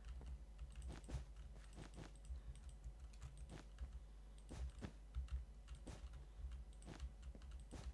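Blocks are set down with soft clicks in quick succession.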